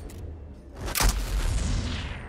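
A gun fires a single shot.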